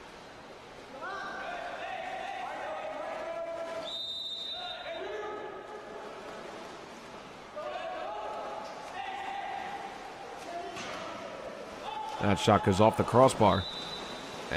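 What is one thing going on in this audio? Water splashes as swimmers thrash and kick.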